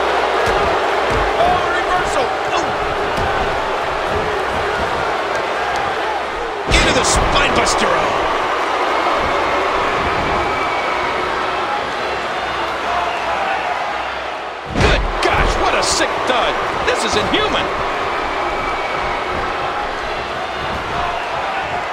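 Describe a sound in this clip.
A large crowd roars and cheers steadily in a big arena.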